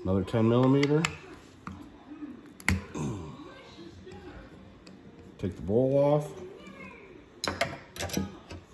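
A screwdriver clicks against metal parts.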